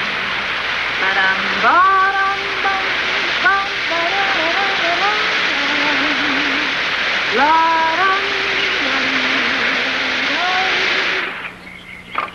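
A man sings a melody over music.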